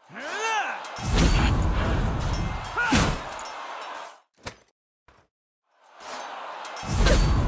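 Metal weapons clash and swish in a fight.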